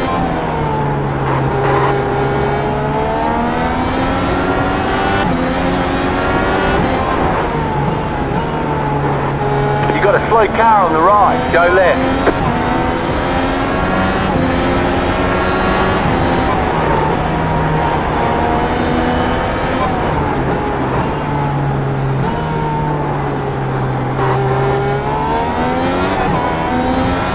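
A racing car engine roars, rising and falling in pitch as it shifts gears.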